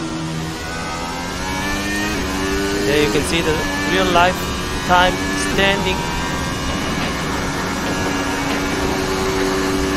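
A racing car engine roars loudly, its pitch climbing and dropping back as the gears change.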